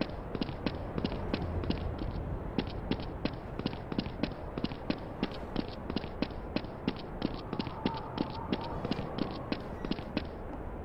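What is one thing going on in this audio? Quick footsteps run steadily on hard pavement.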